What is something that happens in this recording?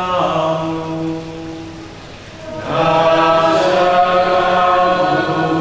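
A middle-aged man sings slowly through a microphone, with long held notes.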